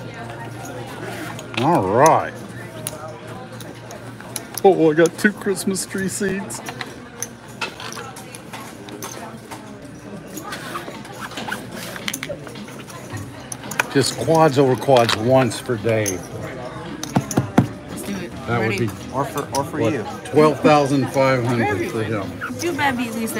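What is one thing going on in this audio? Casino chips click and clatter on a table.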